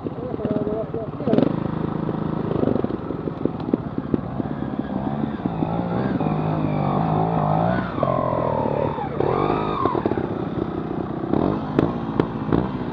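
A motorcycle engine idles and revs up and down close by.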